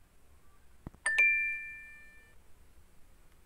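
A short bright chime rings once and fades.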